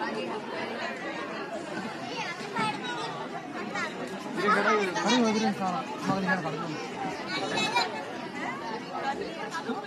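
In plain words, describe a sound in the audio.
A woman talks cheerfully nearby.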